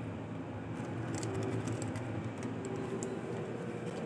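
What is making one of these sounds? Plastic packets rustle as a hand handles them.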